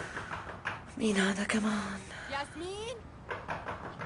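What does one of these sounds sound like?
A young woman moans drowsily close by.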